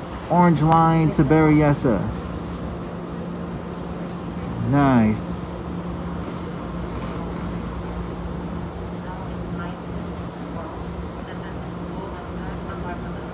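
A train hums and rumbles steadily while rolling along.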